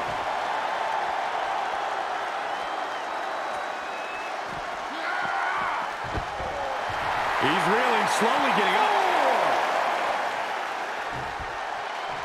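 A large crowd roars and cheers steadily in an echoing arena.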